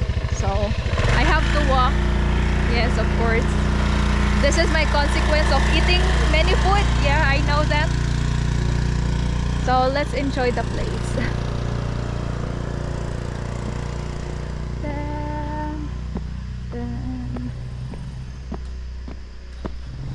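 A motorbike engine idles with a steady low hum.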